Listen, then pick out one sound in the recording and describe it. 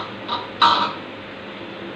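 A metal cup clinks against the rim of a metal bowl.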